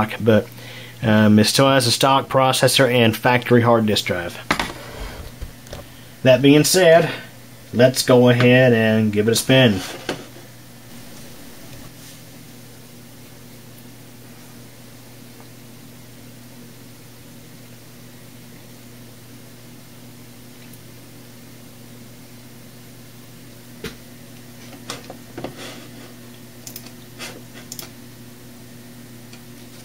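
A computer fan hums steadily.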